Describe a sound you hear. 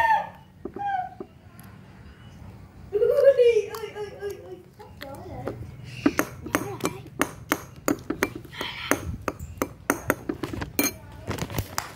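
A metal spoon clinks.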